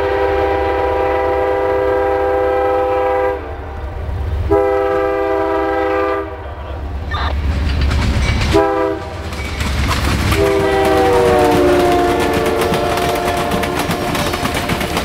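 A train horn blows loud, long blasts and drops in pitch as it passes.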